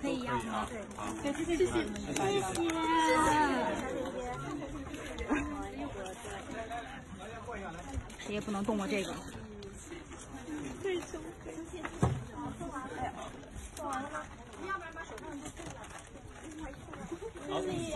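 Plastic bags rustle as gifts are handed over.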